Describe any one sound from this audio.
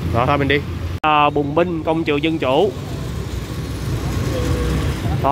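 Motorcycle engines hum as traffic drives past outdoors.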